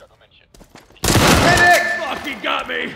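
A rifle fires a quick burst of shots indoors.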